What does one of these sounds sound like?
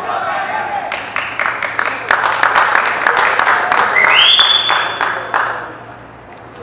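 A group of young players claps in rhythm.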